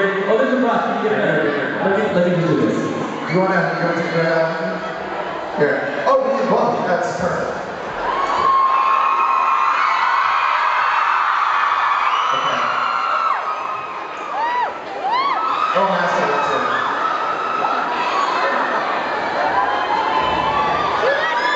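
Loud live band music plays in a hall.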